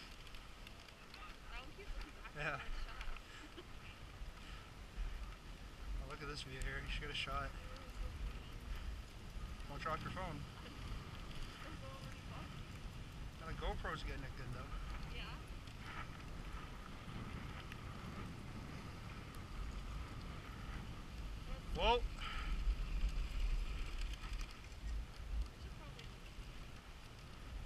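Dogs' paws patter on snow as they run.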